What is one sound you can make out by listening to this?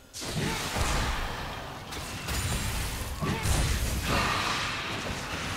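Spells crackle and boom in a fast video game fight.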